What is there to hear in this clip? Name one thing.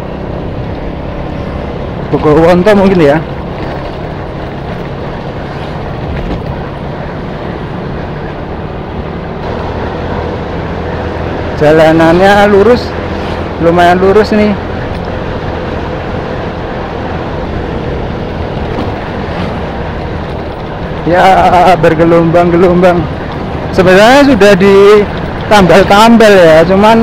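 A motorcycle engine hums steadily as it rides along a road.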